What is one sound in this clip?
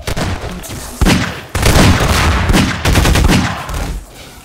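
A pistol fires loud, echoing shots.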